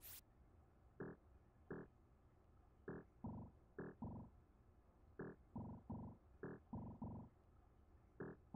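Short electronic beeps sound in quick bursts.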